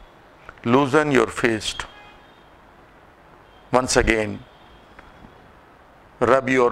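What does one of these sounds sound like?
A man speaks calmly in short phrases close to a microphone.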